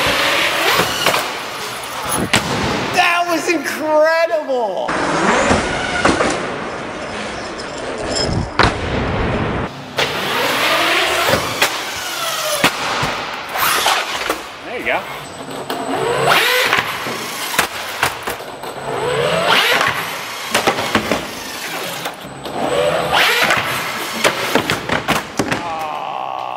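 A toy car's electric motor whines and revs.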